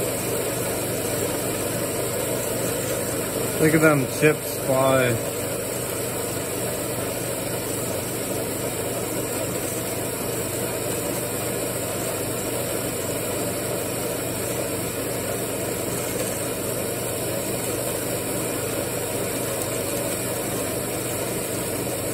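A metal-cutting band saw runs with a steady mechanical hum.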